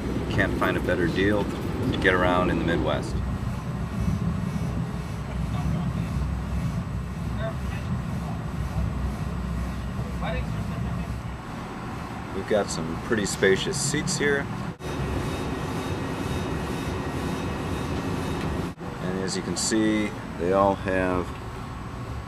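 A middle-aged man talks close by, calmly.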